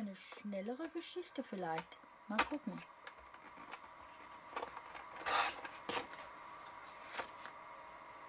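Paper rustles as it is moved.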